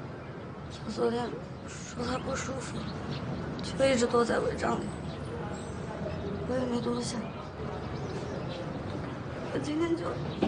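A young woman answers softly, close by.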